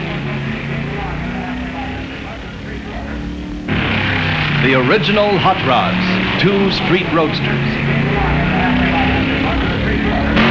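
Racing car engines roar and rev as the cars speed down a track.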